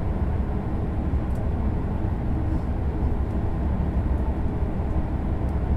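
A train rumbles steadily along the tracks at high speed.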